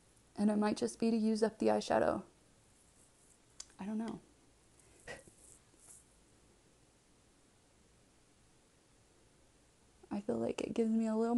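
A woman speaks calmly and close by, through a microphone.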